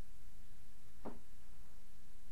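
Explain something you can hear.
Chopsticks click against a bowl.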